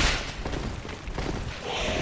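A sword clangs against a skeleton.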